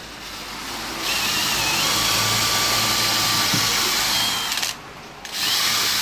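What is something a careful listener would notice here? An electric drill whirs as it bores into wood.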